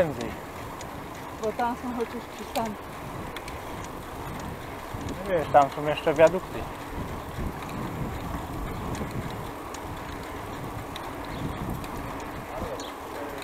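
Wind rushes softly past while riding outdoors.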